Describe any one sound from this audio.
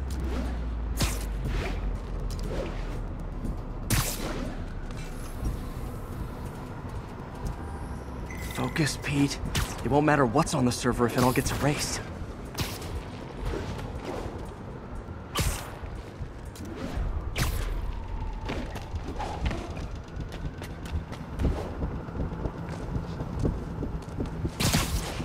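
Web lines shoot out with sharp snapping thwips.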